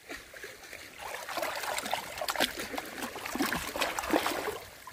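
Water splashes and trickles through a net.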